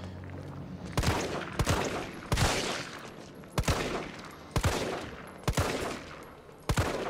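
A pistol fires repeated shots with echoing reports.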